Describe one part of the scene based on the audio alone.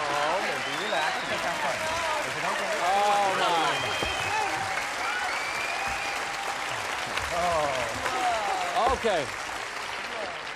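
A woman laughs and exclaims excitedly, close by.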